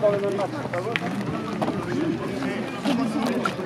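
Footsteps patter on pavement as people run.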